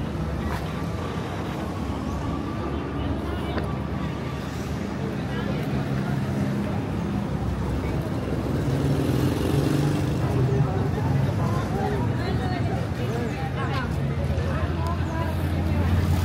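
Footsteps scuff on pavement close by.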